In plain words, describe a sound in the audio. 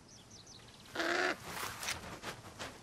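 A large bird flaps its wings as it takes off.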